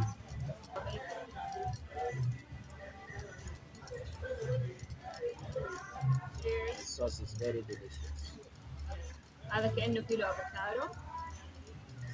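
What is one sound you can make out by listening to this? Chopsticks clink against plates.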